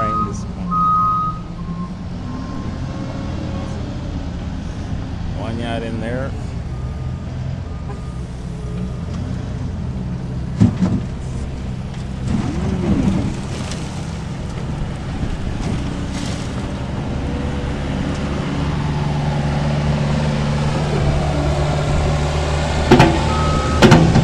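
A loader's diesel engine rumbles steadily close by.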